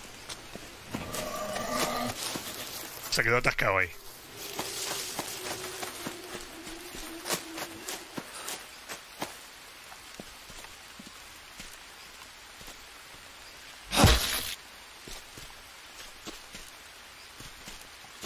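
Footsteps rustle and crunch through dry leaves and undergrowth.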